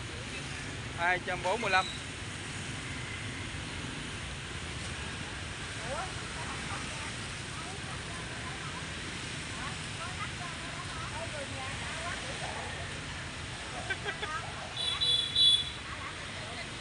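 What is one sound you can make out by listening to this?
A woman talks nearby with animation.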